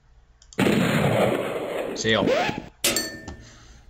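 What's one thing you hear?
An electronic buzzer blares for a wrong answer.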